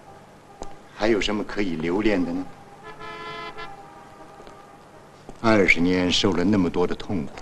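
An older man speaks with emotion.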